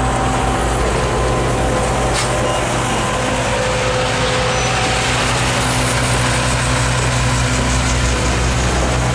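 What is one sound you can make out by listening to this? A passenger train rolls slowly past close by, its wheels rumbling and clattering on the rails.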